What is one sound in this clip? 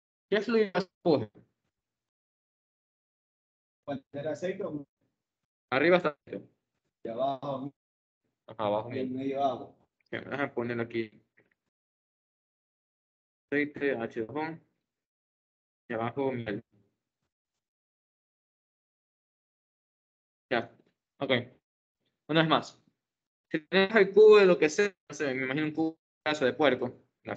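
A young man speaks calmly in short phrases, heard through an online call.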